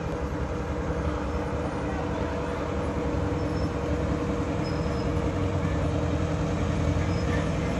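A police car drives slowly past.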